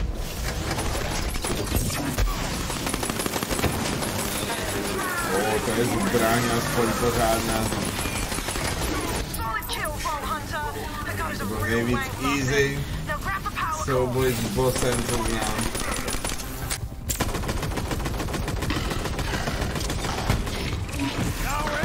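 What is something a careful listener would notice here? Gunfire and electric blasts crackle rapidly in a game.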